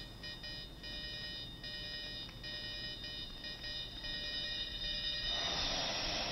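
A video game tune plays with high, bell-like notes.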